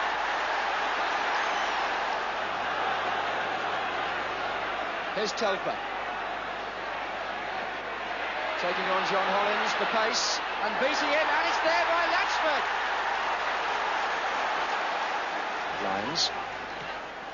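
A large crowd roars and cheers in a stadium.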